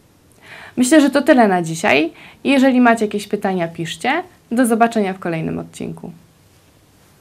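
A young woman speaks calmly and close to a microphone.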